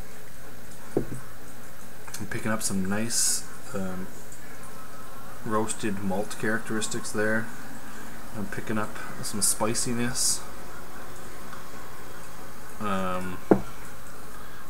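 A glass knocks on a table.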